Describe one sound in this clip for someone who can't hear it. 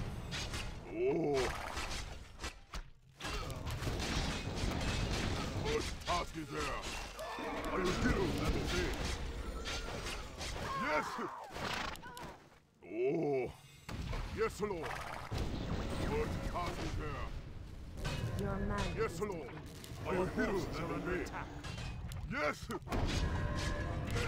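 Weapons clash and strike in a battle.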